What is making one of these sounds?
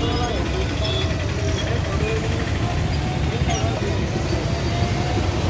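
Several men talk loudly nearby in a busy street.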